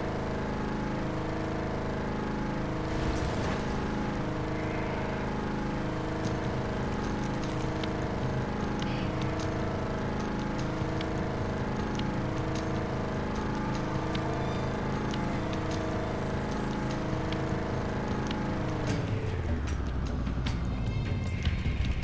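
Water splashes under the wheels of a driving vehicle.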